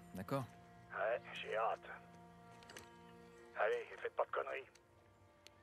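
A man answers through a walkie-talkie speaker.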